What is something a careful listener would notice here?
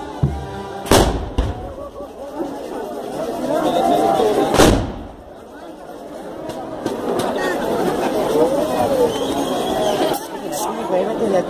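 A crowd of men and women chatter and call out loudly outdoors.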